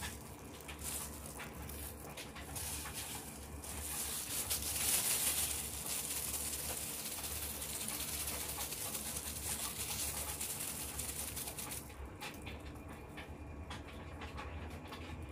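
Plastic gloves crinkle and rustle as hands knead soft dough.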